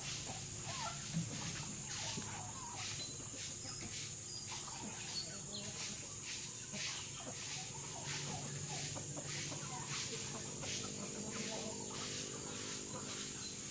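A broom sweeps across dirt ground with short scratchy strokes.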